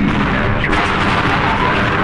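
An explosion bursts close by.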